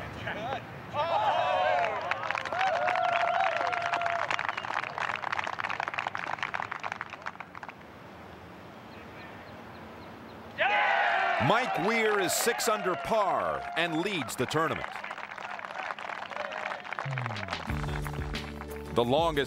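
A crowd applauds loudly outdoors.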